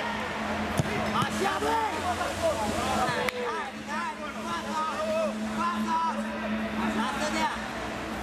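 Young men shout and call out across an open outdoor pitch.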